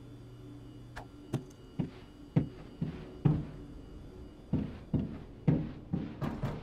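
Footsteps thud on a hard floor.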